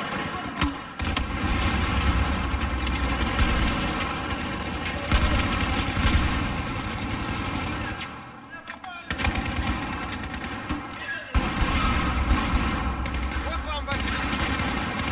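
Rifles fire in rapid bursts close by, echoing in a tight space.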